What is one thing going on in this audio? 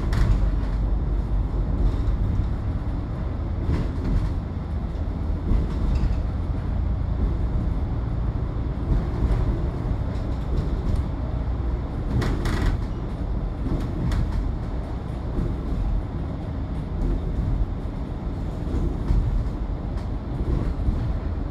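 Traffic hums and whooshes past on the road.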